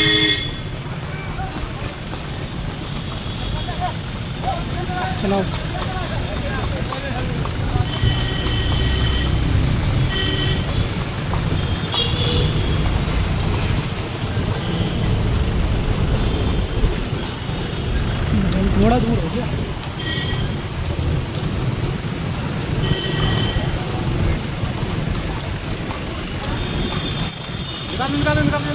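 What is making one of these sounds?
Horse hooves clop on pavement.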